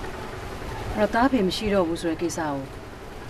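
A middle-aged woman speaks in a low, serious voice close by.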